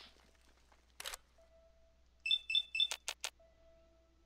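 Short electronic beeps and clicks sound in quick succession.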